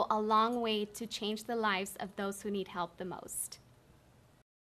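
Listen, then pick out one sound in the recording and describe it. A young woman speaks warmly and clearly into a close microphone.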